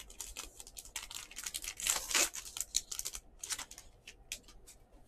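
A foil card pack crinkles as hands tear it open.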